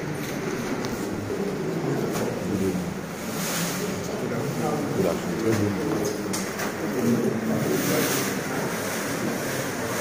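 Bags of cement thump onto a hard floor.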